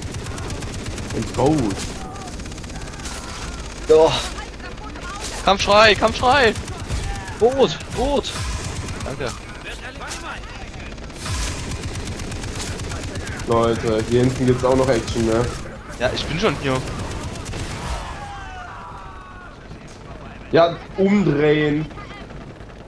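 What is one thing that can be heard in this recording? A heavy machine gun fires in rapid bursts.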